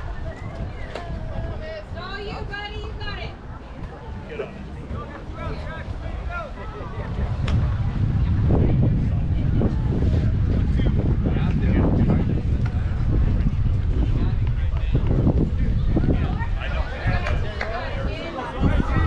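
Young players call out and chatter across an open field.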